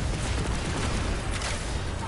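An arrow whooshes from a bow.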